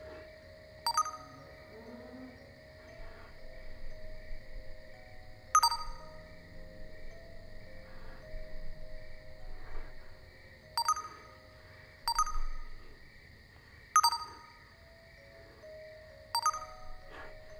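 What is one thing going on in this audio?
A phone chimes with short message alerts.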